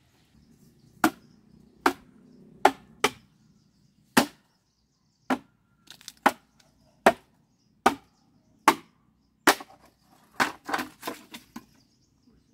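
A machete chops into bamboo with sharp, repeated knocks.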